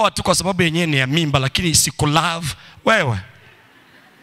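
A man preaches loudly and with animation through a microphone in an echoing hall.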